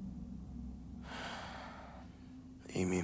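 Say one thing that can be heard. A young man sighs heavily close by.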